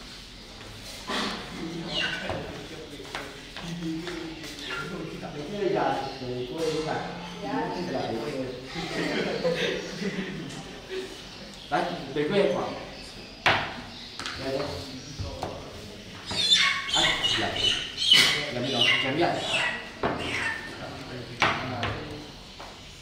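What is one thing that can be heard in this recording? Several men talk and murmur together nearby.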